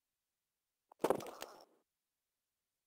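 A body hits a stone floor with a heavy thud.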